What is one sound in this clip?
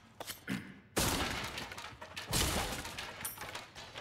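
Wood splinters and breaks apart.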